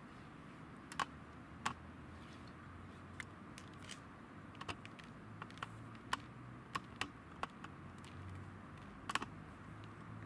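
Small bottles click and tap against each other and the ground.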